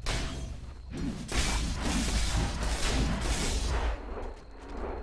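A magic spell whooshes with a deep rumble.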